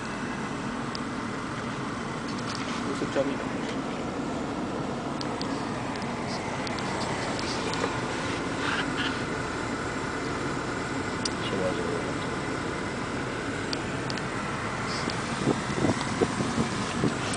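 A car engine hums steadily with road noise from inside a moving car.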